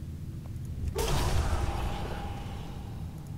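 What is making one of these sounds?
A magic spell bursts with a loud whoosh and fades.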